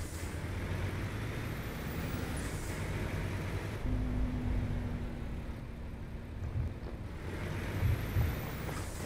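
A diesel truck engine rumbles as the truck drives slowly.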